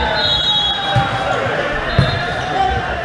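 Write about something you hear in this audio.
A volleyball is struck with a sharp smack in an echoing hall.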